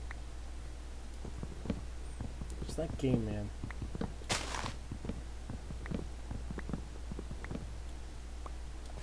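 An axe chops wood with quick, regular knocks.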